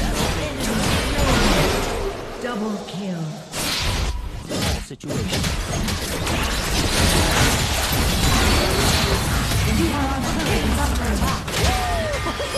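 Video game spell effects crackle, whoosh and burst during a fast fight.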